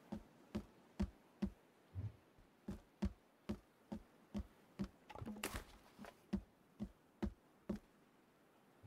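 Wooden logs knock and thud against each other in quick, regular beats.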